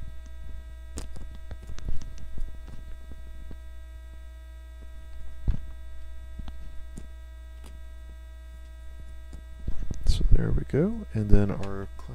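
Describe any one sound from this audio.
Playing cards are slid and tapped down onto a table.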